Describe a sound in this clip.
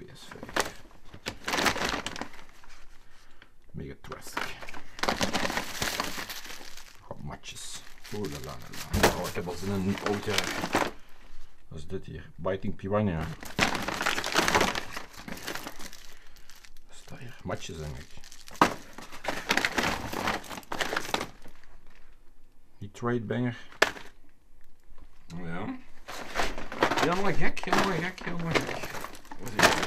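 A plastic bag rustles and crinkles as hands rummage through it.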